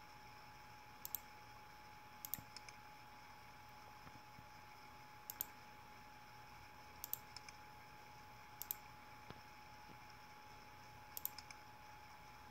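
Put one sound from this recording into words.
Small buttons on a handheld device click in quick pairs.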